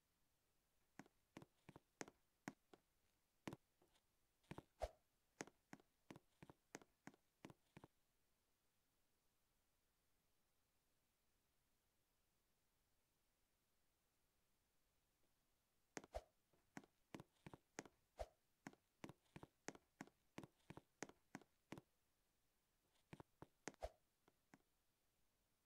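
Quick light footsteps tap in bursts on a hard surface.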